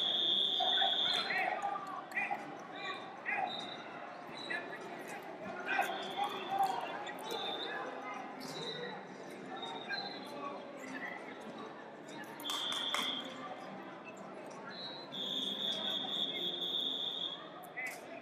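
A referee's whistle blows sharply several times.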